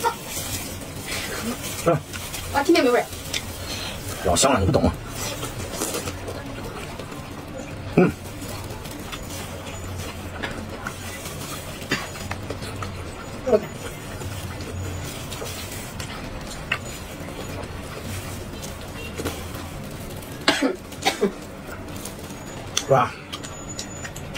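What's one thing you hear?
A man slurps and chews food noisily up close.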